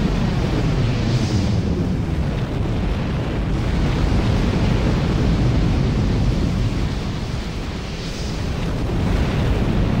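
Guns fire rapid bursts.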